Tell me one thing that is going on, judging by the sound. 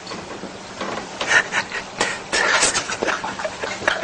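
A young man sputters and groans.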